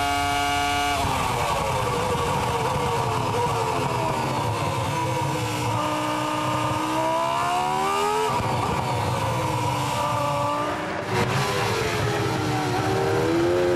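A racing car engine falls and climbs in pitch through quick gear changes.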